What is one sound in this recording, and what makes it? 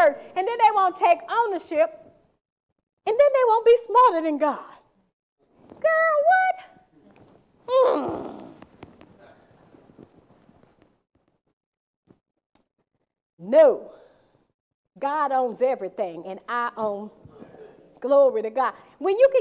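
A woman speaks with animation into a microphone, pausing between phrases.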